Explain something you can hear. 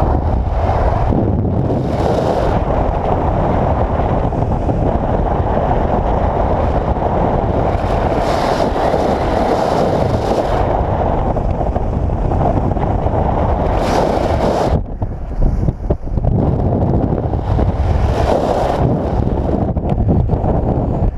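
Wind rushes and buffets loudly against a nearby microphone.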